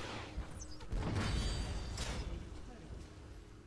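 A tower explodes with a deep, loud blast.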